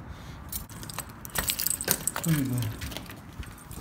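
A key scrapes into a lock and turns with a click.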